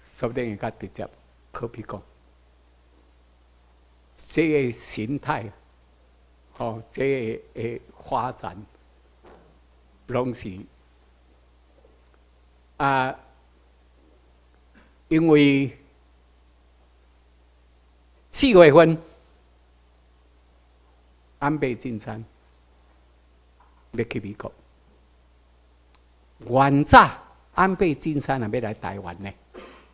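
A man speaks into a microphone over a loudspeaker, in short phrases with pauses.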